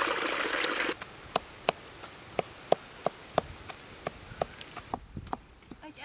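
A wooden pestle pounds rhythmically in a mortar.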